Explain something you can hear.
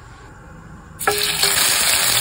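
Meat sizzles loudly in a hot pan.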